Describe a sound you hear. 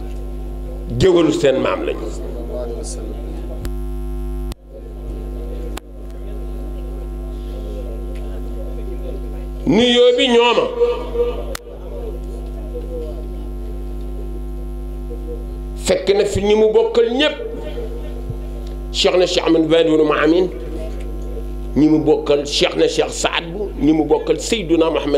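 An elderly man speaks through a microphone and loudspeaker in short bursts, with pauses between them.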